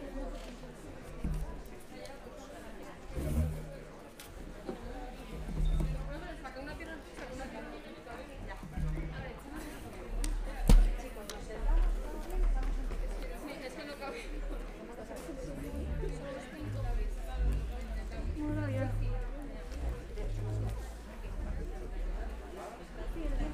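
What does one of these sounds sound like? A young woman speaks steadily into a microphone in a large hall.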